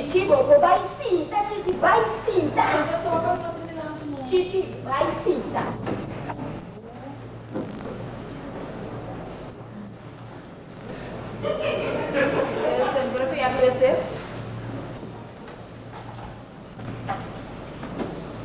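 A woman speaks sharply and with animation in a slightly echoing room.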